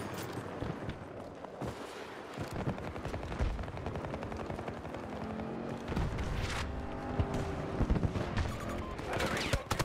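Footsteps crunch over loose rocks.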